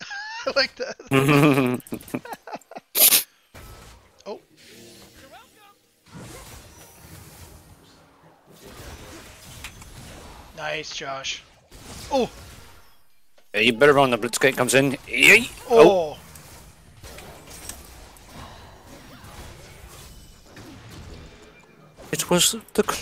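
Magic spells whoosh and blast in a fantasy battle.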